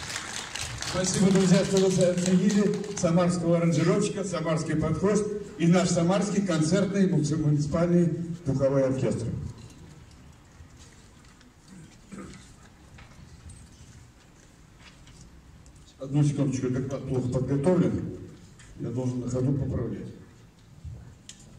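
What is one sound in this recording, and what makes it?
An elderly man speaks calmly into a microphone over loudspeakers in an echoing hall.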